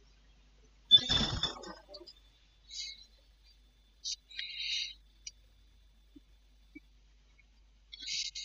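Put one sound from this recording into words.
Short electronic menu blips sound as a selection cursor moves.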